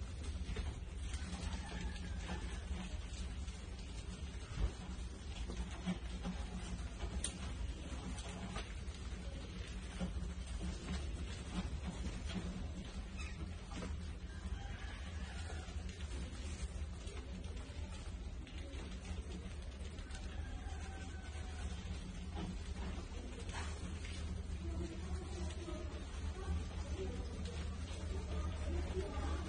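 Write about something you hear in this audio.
Many mice squeak and chirp in a high, busy chatter.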